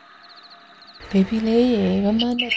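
A woman speaks gently, as if reading a story aloud.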